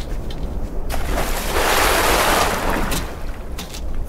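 Water splashes heavily.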